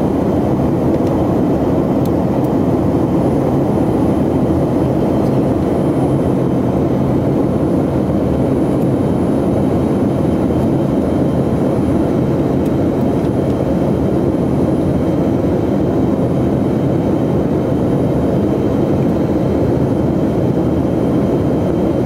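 Aircraft engines drone steadily inside the cabin.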